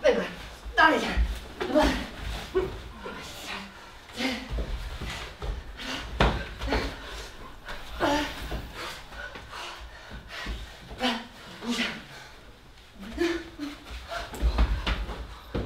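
Bodies scuffle and thud on a floor.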